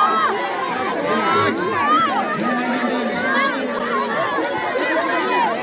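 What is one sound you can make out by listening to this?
A large outdoor crowd cheers and shouts excitedly.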